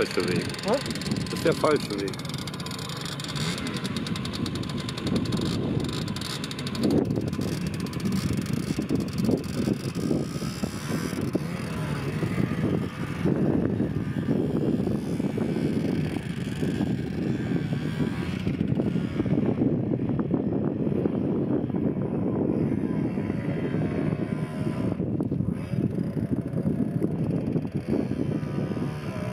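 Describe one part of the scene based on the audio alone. A motorcycle engine revs and buzzes nearby, rising and falling as the bike climbs over sand.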